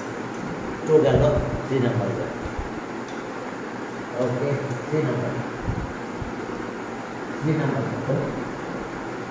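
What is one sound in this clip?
A man speaks calmly into a headset microphone, in short phrases.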